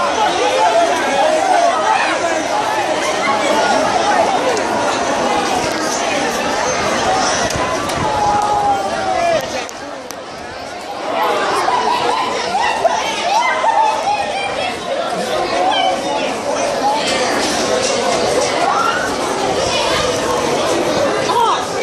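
A large crowd of young people chatters and shouts outdoors.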